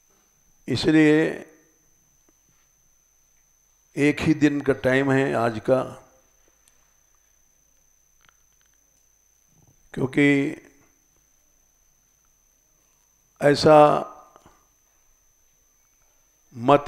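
An elderly man speaks calmly through a headset microphone, in short phrases with long pauses.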